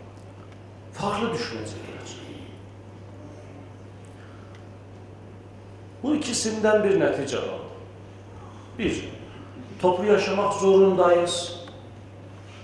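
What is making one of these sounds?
A middle-aged man speaks calmly into a microphone, in bursts with pauses, in a large hall.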